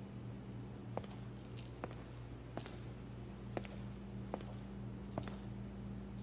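Footsteps tap slowly on a hard floor.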